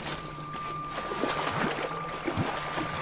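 Water splashes as someone wades through a shallow stream.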